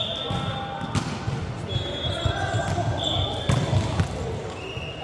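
A volleyball is struck with a hard smack.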